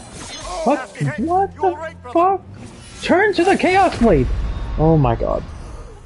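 Magic energy bursts with a crackling whoosh.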